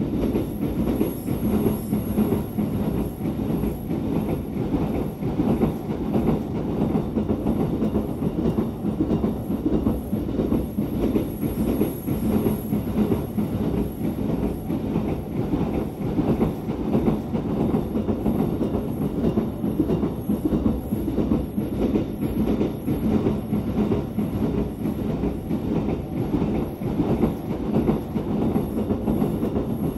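A train rumbles steadily along the track, heard from inside the carriage.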